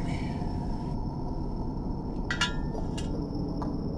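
Small glass vials clink on a metal tray.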